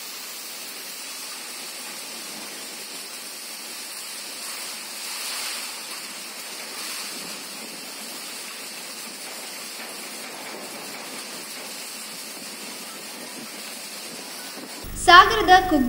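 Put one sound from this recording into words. Strong wind gusts and roars.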